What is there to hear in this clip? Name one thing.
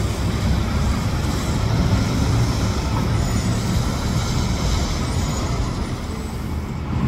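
A city bus engine rumbles as the bus pulls away.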